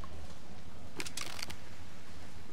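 A bowstring creaks as an arrow is drawn back.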